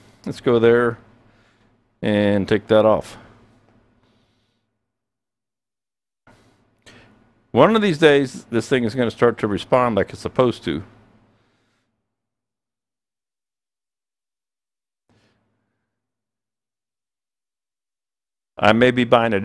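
A middle-aged man speaks calmly through a headset microphone, in short bursts with pauses.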